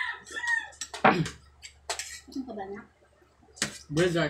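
A spoon scrapes and clinks on a ceramic plate.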